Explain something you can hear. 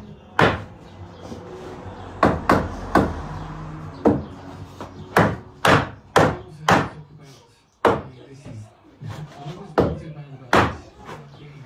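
A hammer knocks sharply on wood, in uneven blows.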